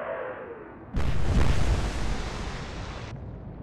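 Shells crash into the sea with heavy splashes.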